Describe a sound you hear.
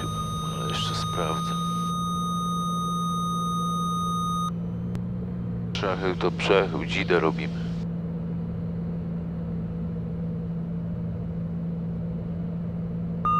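A small plane's engine drones steadily inside the cabin.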